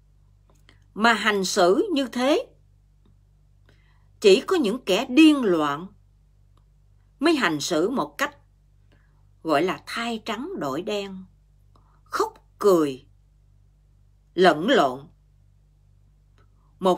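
A middle-aged woman speaks calmly and close to a microphone, in short phrases with pauses.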